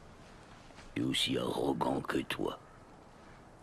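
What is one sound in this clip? A young man speaks with feeling, close by.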